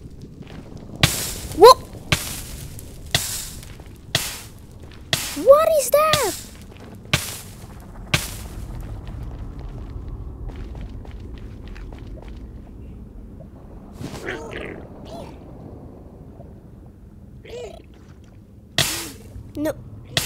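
Fireballs burst in loud, whooshing blasts.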